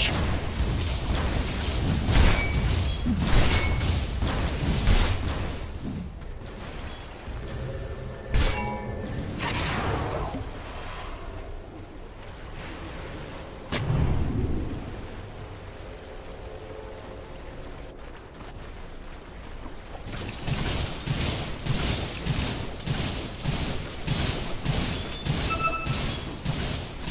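Spells burst and weapons clash in a fantasy battle.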